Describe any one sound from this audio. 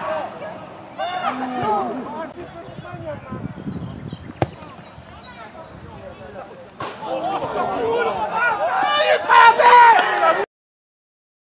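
Young men shout and call out across an outdoor football pitch.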